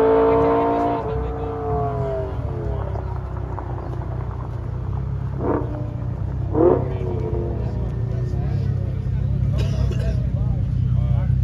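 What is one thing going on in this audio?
Car engines idle close by with a deep, steady rumble.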